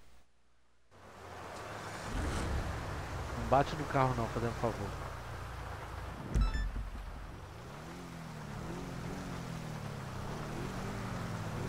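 A sports car engine revs and roars while driving.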